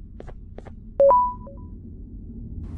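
An electronic keypad beeps twice.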